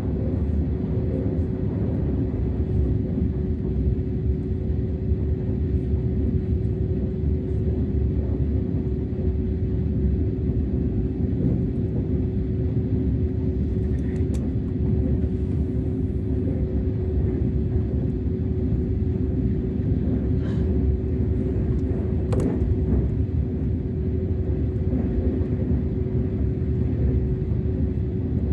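A train rumbles along the tracks with a steady low roar.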